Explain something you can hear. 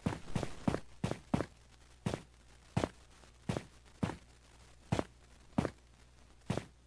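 Footsteps thud steadily through grass.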